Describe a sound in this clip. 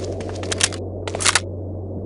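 A submachine gun is reloaded with metallic clicks.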